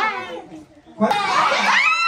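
A group of women and men laugh and sing along cheerfully.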